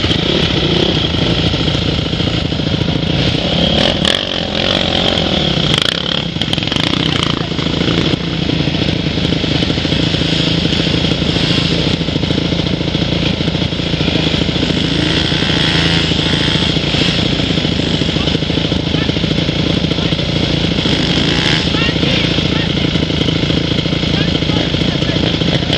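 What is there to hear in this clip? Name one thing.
Dirt bike engines idle and rev nearby outdoors.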